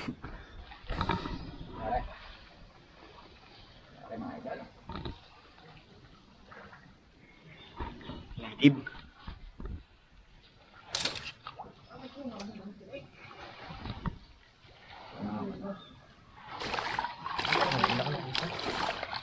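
Water splashes as a man wades through a stream.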